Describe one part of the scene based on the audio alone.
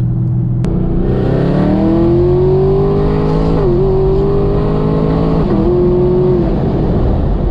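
A car engine roars as it accelerates hard, rising in pitch and dipping at each gear change.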